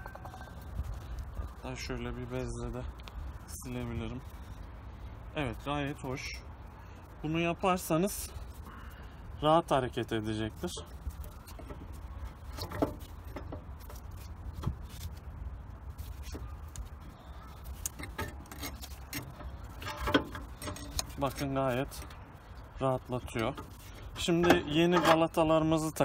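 Metal parts clink and scrape now and then.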